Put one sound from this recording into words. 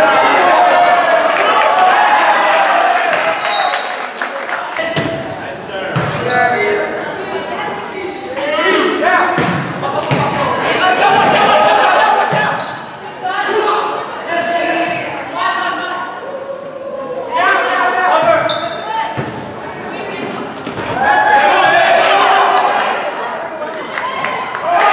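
Players' shoes squeak sharply on a hard floor in a large echoing gym.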